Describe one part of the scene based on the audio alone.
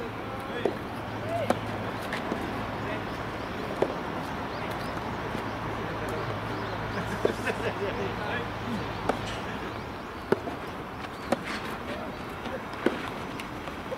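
Tennis balls are struck with rackets, with sharp pops outdoors.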